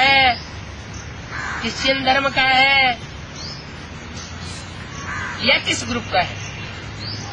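An elderly man speaks calmly close by, outdoors.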